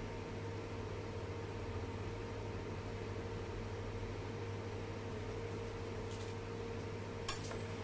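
A metal spatula scrapes against a cake board.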